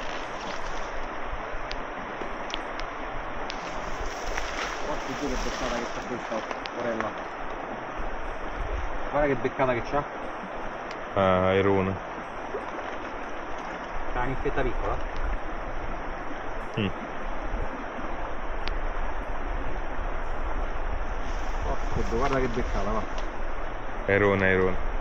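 A river streams and gurgles steadily close by.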